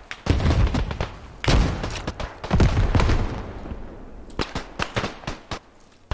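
Water splashes as a soldier wades through it.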